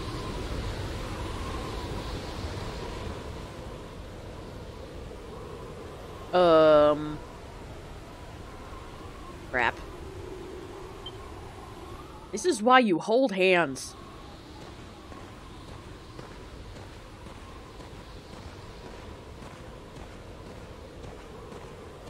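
Wind howls steadily in a snowstorm.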